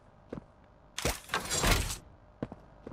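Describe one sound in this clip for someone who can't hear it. A mechanical grab hand shoots out and clanks against a metal lever.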